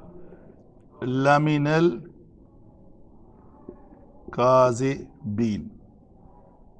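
A middle-aged man recites in a melodic, chanting voice close by.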